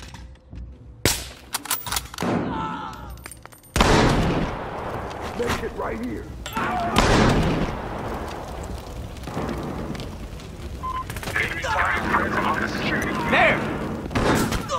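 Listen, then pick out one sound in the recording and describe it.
Gunfire and explosions crack and boom close by.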